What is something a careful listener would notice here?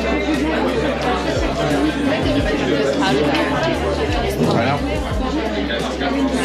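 Many people chatter in a busy, echoing room.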